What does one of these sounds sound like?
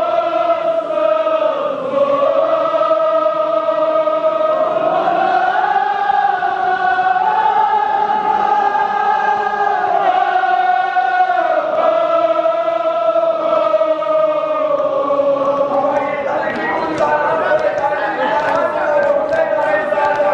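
A crowd of men chants loudly in unison.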